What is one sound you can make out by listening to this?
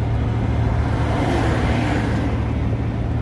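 An oncoming truck rushes past with a brief whoosh.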